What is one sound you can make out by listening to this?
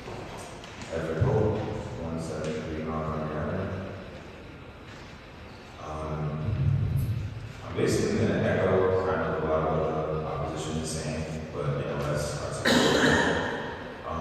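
A man speaks into a microphone in a large echoing hall.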